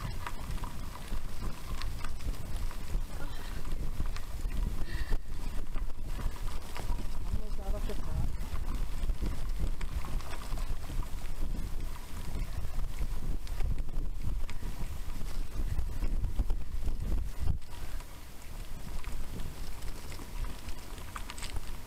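Bicycle tyres crunch and rumble over a dirt track.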